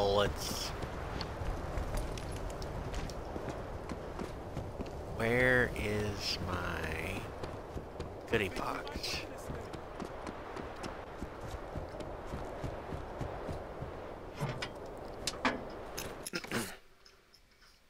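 Heavy boots thud quickly on dirt.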